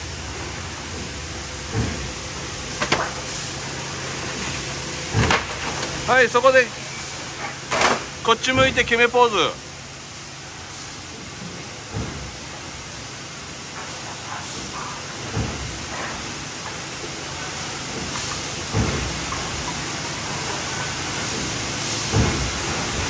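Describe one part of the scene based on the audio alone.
Factory machinery hums steadily.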